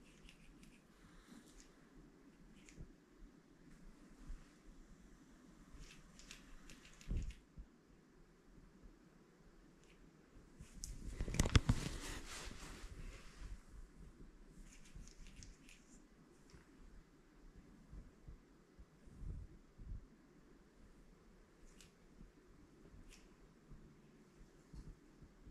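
A cloth softly rubs and wipes a hard surface close by.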